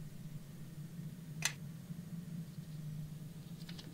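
A game menu gives a short click as a tab changes.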